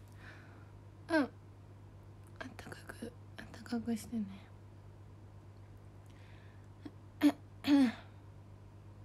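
A young woman speaks softly in short bursts close to the microphone.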